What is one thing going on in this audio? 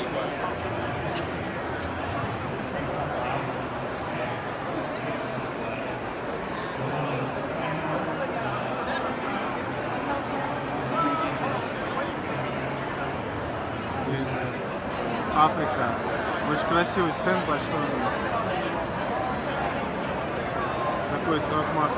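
A crowd of men and women chatter all around in a large, busy hall.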